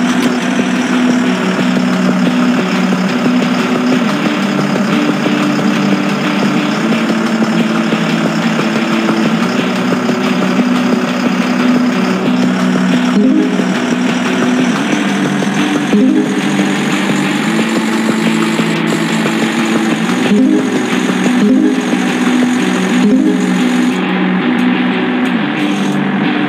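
A truck engine hums steadily and speeds up.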